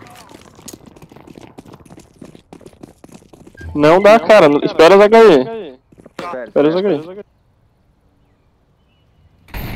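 Footsteps run quickly on stone paving.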